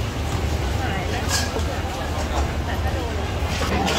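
A wooden pestle thumps in a clay mortar.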